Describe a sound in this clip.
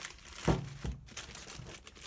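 A cloth rustles as hands rub with it.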